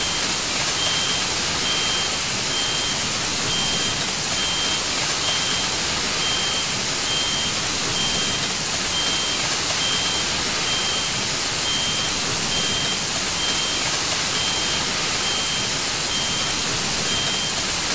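Water sprays steadily from a fire hose.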